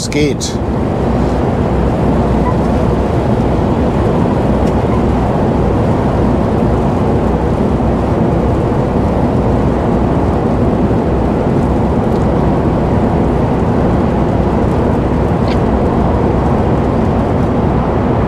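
Tyres roar steadily on a motorway.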